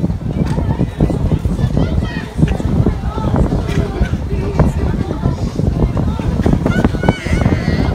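A crowd chatters at a beach.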